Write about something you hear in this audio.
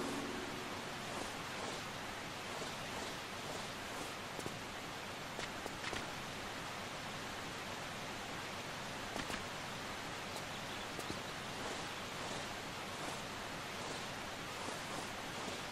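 Footsteps patter quickly on rocky ground.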